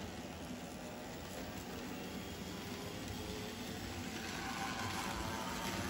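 A model train rumbles and clatters along a track, growing louder.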